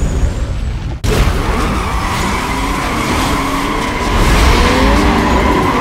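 Car engines rev loudly as the cars speed off.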